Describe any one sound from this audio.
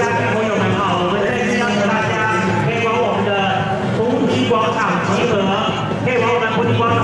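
A large crowd chants together outdoors.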